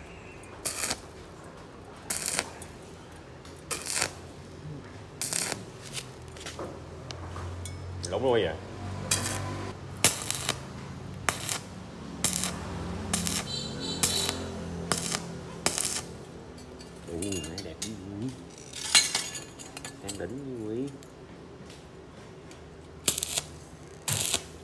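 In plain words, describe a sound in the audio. An arc welder crackles and sizzles in short bursts.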